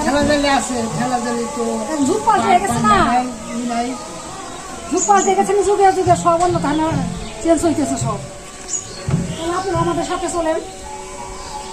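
A middle-aged woman talks calmly close by.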